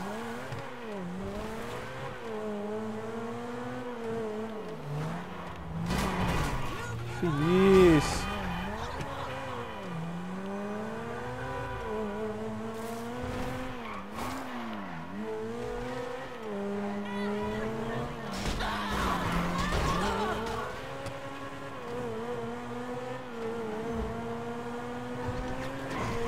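A sports car engine roars and revs up and down as the car speeds along.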